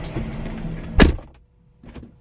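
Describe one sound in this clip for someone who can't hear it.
A car door shuts with a heavy thud.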